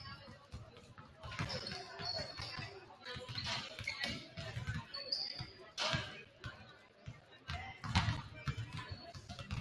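Basketballs bounce repeatedly on a wooden court in a large echoing gym.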